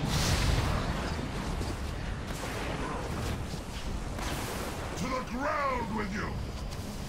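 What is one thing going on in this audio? Magic spells whoosh and crackle during a battle.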